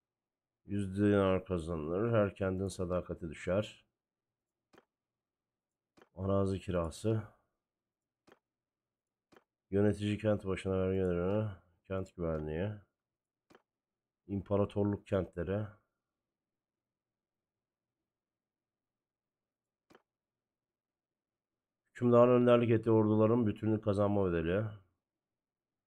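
A man talks calmly into a close microphone, in short bursts with pauses.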